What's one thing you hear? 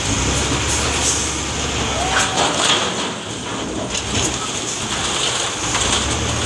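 Rubble and broken masonry crash and clatter as they are pushed.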